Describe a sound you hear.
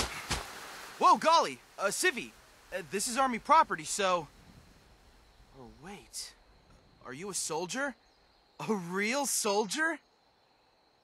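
A man speaks calmly and steadily, close by.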